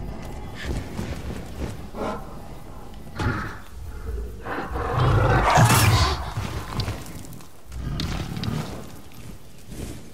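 Heavy footsteps of a huge creature thud on stone.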